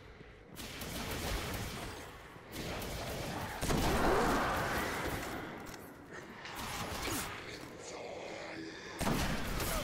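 Gunshots fire in loud bursts with echoing blasts.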